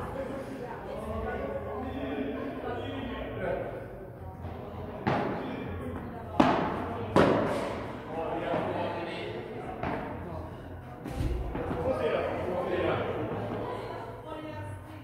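Men talk and call out to each other in an echoing hall.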